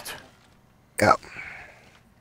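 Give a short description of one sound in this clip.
A rifle is raised with a sharp metallic clack.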